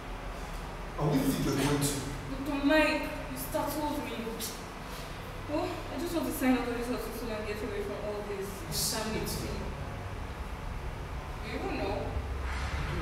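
A young man speaks nearby in an agitated, urgent voice.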